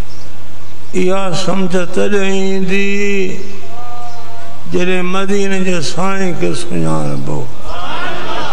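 An elderly man chants in a drawn-out, melodic voice through a microphone and loudspeakers.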